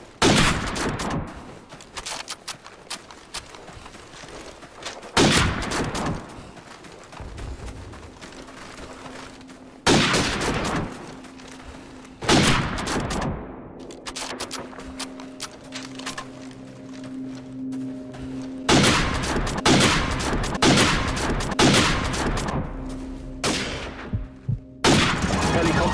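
A bolt-action sniper rifle fires single shots.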